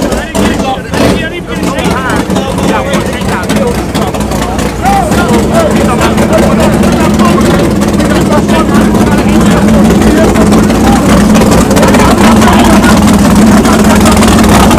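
A crowd chatters and shouts loudly outdoors.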